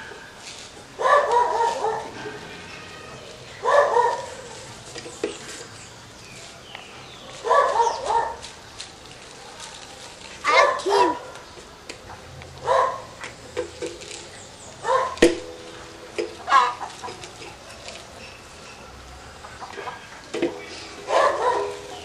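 An elderly man calls out loudly in short bursts.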